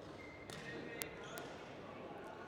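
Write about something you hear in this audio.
A racket strikes a shuttlecock with sharp pops in a large echoing hall.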